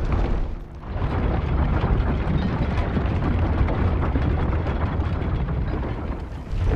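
Gusty wind roars outdoors.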